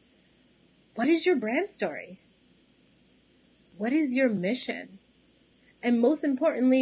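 A young woman speaks calmly and with pauses into a close microphone.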